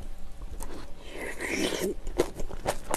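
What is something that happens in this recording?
A young woman slurps noisily, close to a microphone.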